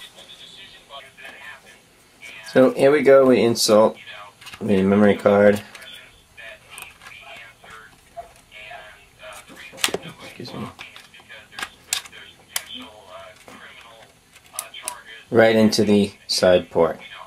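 A plastic case clicks and rattles as it is handled close by.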